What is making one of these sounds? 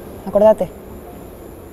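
A woman speaks a short, sharp phrase up close.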